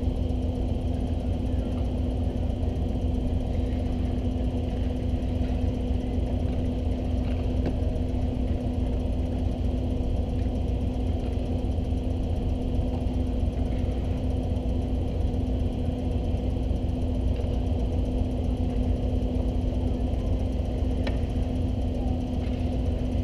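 A hockey stick clacks against a puck on ice.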